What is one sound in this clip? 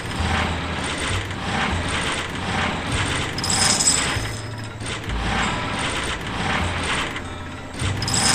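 A slot machine's reels spin and clatter in a quick, repeating rhythm.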